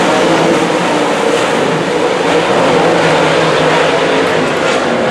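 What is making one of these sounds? Several race car engines roar loudly around a dirt track, heard from a distance outdoors.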